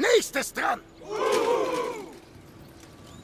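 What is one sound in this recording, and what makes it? A crowd of soldiers shouts together in a loud cheer.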